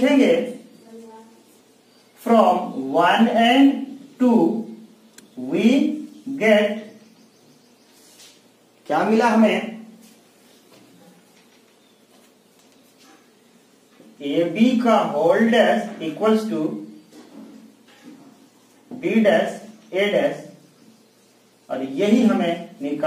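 A man speaks calmly and clearly nearby, explaining in short phrases with pauses.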